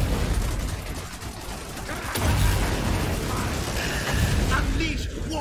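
Game battle noise rumbles low and steadily.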